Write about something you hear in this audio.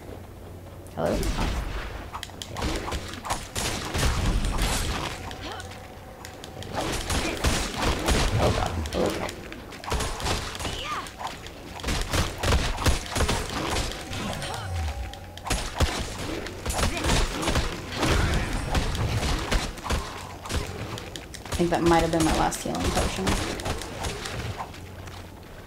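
Fiery spells whoosh and burst in quick bursts.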